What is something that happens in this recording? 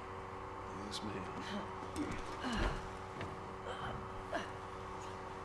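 A girl grunts with effort as she climbs.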